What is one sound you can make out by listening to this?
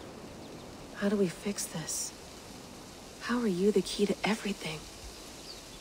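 A young woman speaks with feeling, asking questions, close by.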